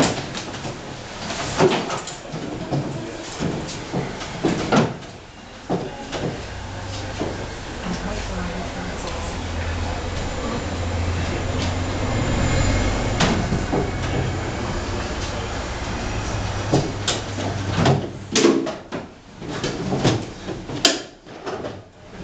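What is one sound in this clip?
Feet knock and shuffle on hollow wooden crates.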